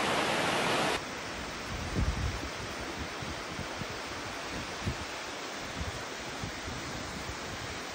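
A waterfall pours down into a river.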